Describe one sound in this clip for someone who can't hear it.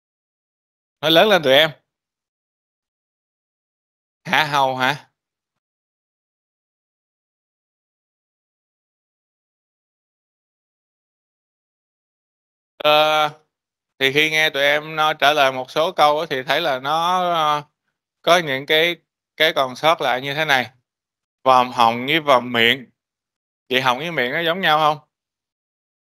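A man speaks calmly through a microphone over an online call.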